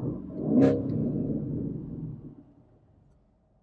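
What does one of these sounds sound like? A car engine rumbles deeply from inside the car, then fades away.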